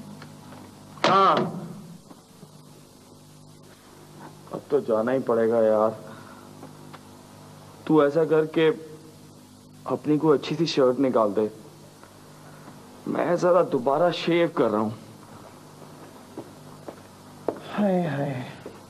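A second man answers lazily, close by.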